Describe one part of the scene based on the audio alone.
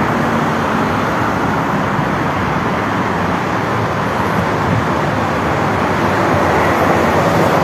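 Traffic rushes past steadily outdoors.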